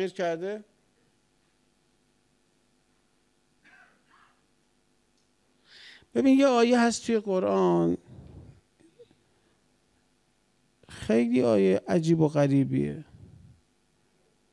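A middle-aged man speaks slowly and with emphasis into a microphone, pausing between phrases.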